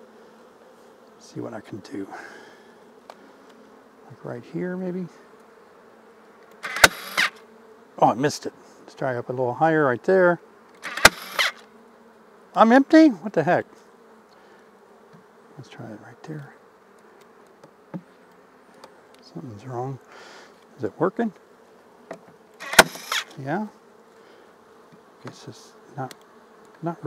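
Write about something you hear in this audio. Bees buzz steadily in a low hum.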